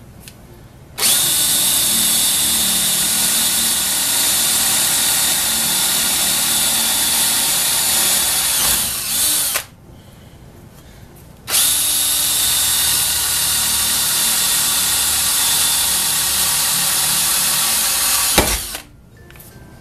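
A cordless drill whirs loudly as it bores into metal.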